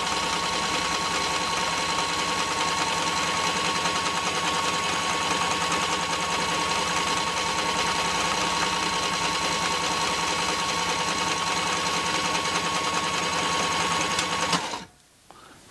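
A machine whirs and hums steadily, then stops.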